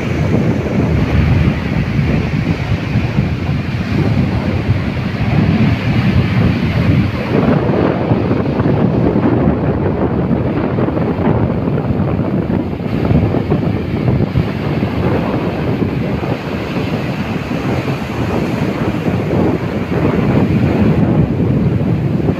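Wind blows hard across the open air.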